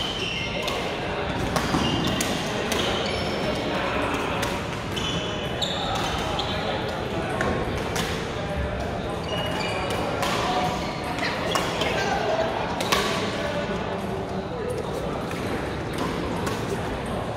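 Sneakers squeak on the hall floor.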